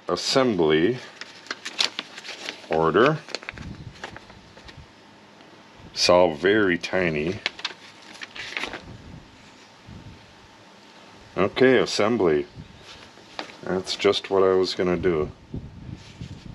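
Paper rustles as pages of a booklet are turned.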